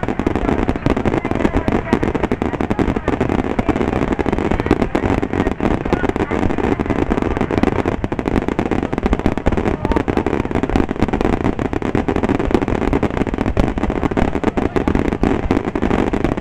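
Fireworks burst with loud booms.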